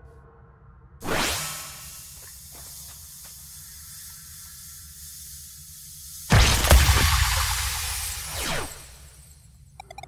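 A magical shimmering whoosh swells and then fades away.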